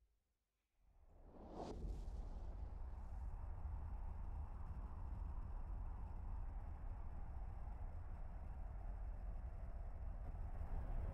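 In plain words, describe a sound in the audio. A spaceship's engines rumble deeply and steadily.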